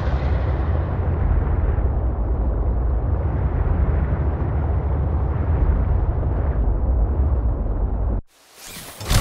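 Water rumbles deeply and steadily all around.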